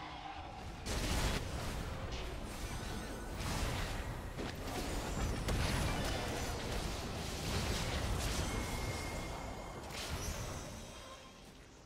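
Spell blasts and impacts crash during a video game battle.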